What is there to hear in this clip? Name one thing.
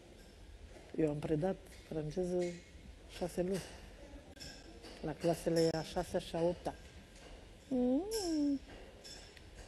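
A woman talks with animation nearby.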